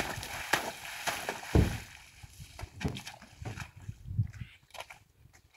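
A horse paws and splashes in a muddy puddle.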